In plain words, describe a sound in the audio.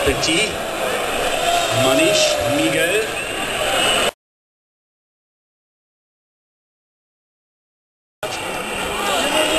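A large outdoor crowd chatters, cheers and shouts loudly.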